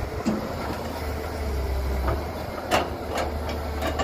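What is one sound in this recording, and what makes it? An excavator bucket scrapes against the ground.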